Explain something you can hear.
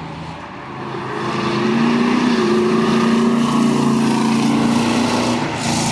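A car's tyres hiss on the road.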